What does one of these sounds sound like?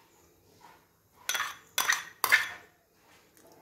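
A spoon scrapes and taps against a bowl.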